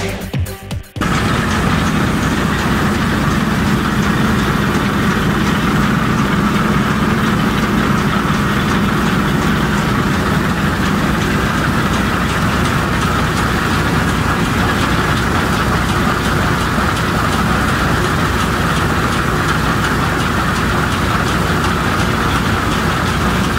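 A combine harvester's engine roars steadily close by.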